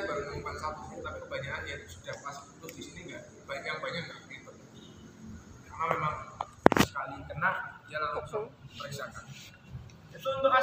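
A young man talks calmly and explains, close by, in a room with a slight echo.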